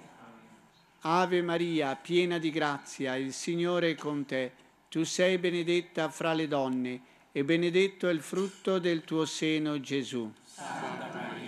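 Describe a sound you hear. An elderly man speaks calmly into a microphone, heard through a loudspeaker in an open echoing space.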